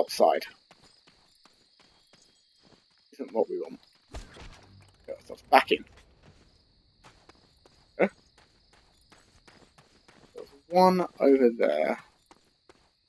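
A young man talks in bursts, with animation, close to a microphone.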